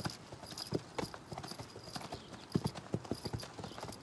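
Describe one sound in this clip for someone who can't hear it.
Horses' hooves thud slowly on dirt.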